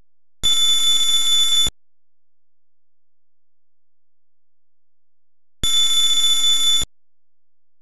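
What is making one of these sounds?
Rapid electronic blips chatter in two short bursts.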